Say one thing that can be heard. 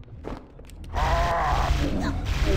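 Energy weapons fire with loud, crackling bursts.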